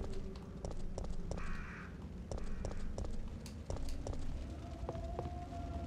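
Footsteps thud quickly on stone.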